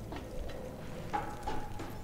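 Footsteps climb wooden stairs.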